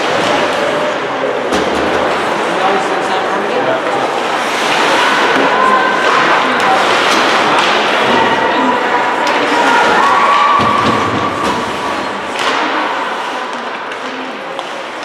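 Skates scrape and hiss across ice in a large echoing arena.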